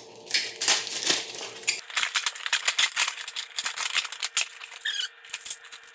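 Cardboard flaps rustle as a box is opened.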